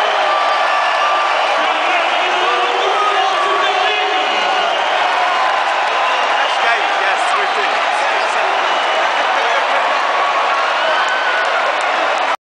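Many people shout and whistle nearby.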